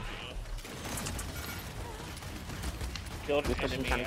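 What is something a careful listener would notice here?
Gunfire rattles rapidly in a game.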